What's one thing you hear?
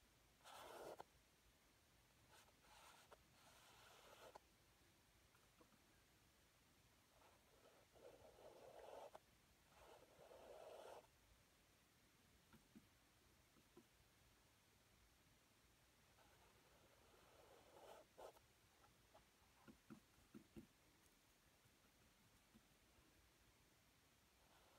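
A paintbrush scrapes and swishes across a canvas in short strokes.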